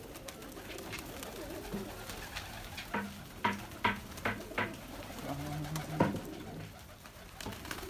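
Pigeon wings flap and clatter as birds take off and land.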